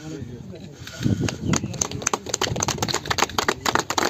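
A small group of people clap their hands.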